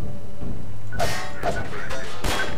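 Wood splinters and crashes as a crate breaks apart.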